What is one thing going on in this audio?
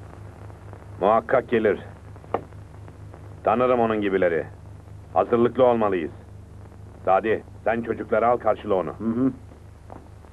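A man speaks firmly in a low voice, close by.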